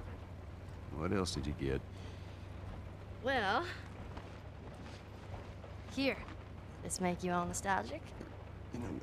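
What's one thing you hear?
A girl speaks with curiosity, close by.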